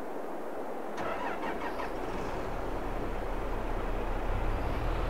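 A tractor engine hums quietly.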